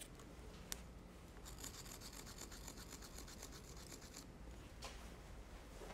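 A small metal key clicks and taps against a machine part.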